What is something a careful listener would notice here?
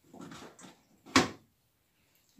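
A plastic drawer slides shut with a click.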